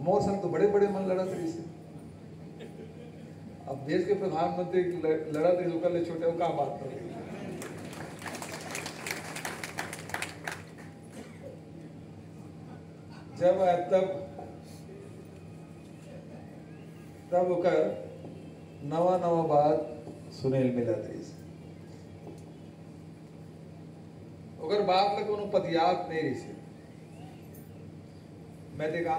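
A middle-aged man speaks forcefully into a microphone, heard through loudspeakers.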